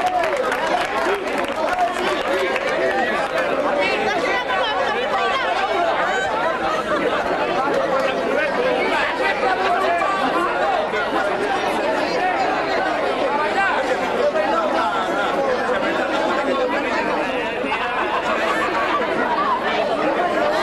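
A crowd of men and women chatter at once outdoors, close by.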